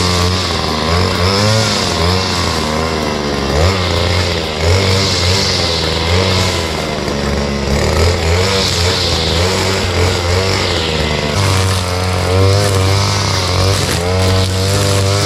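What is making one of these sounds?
A string trimmer engine buzzes loudly and revs up and down while cutting grass.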